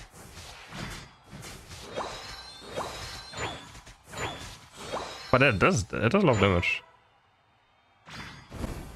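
A young man talks casually and with animation close to a microphone.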